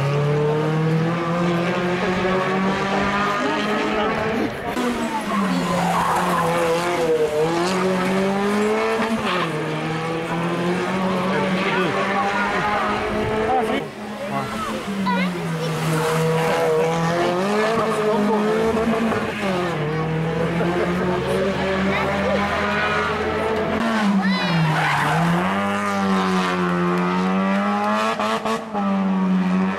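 Racing car engines roar loudly, revving up and down as the cars speed past.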